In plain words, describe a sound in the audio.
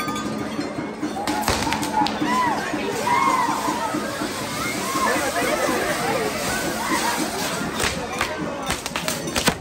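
Fireworks crackle and bang loudly outdoors.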